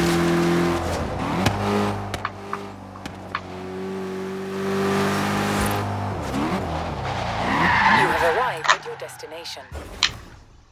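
A car engine hums and revs as the car drives.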